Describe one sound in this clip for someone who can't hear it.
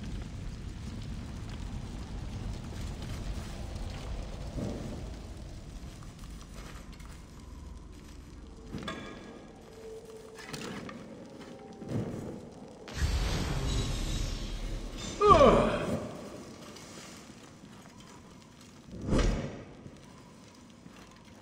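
A torch fire crackles and roars close by.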